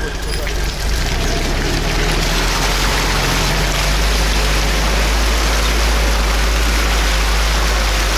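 Tyres churn and splash through wet mud.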